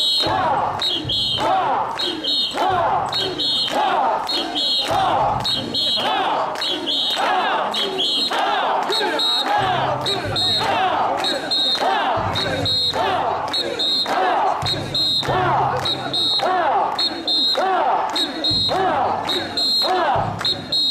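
People clap their hands in time with the chant.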